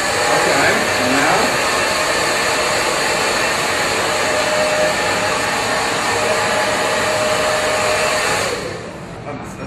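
A hair dryer blows loudly and steadily.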